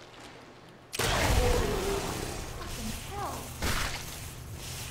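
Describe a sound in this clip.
An electric gun fires with a loud crackling burst.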